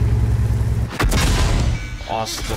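A loud explosion bursts close by.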